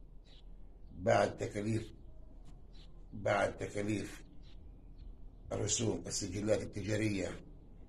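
An older man speaks slowly and calmly close by, with pauses between phrases.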